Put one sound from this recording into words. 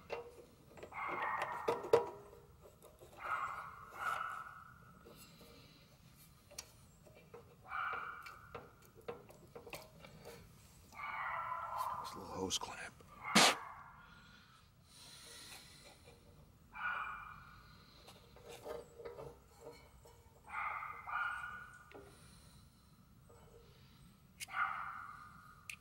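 Metal parts click and clink.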